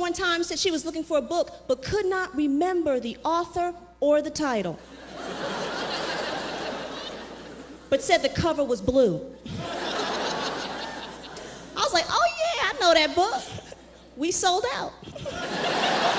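A woman speaks with animation through a microphone in a large hall.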